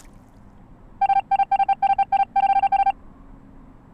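Rapid electronic beeps play in quick bursts.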